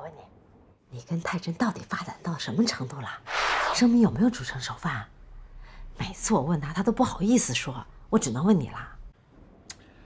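A middle-aged woman speaks with animation through a phone.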